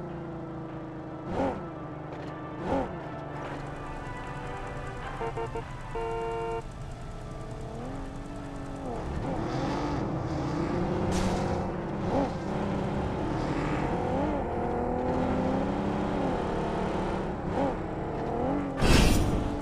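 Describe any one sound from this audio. A car engine hums and revs as a car drives along a road.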